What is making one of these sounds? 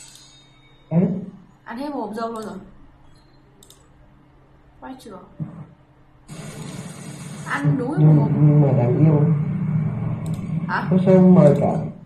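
A young woman speaks animatedly and close to a microphone.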